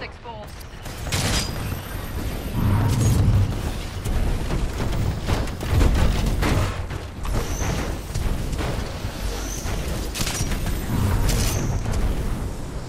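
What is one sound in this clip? Gunshots crack in short bursts nearby.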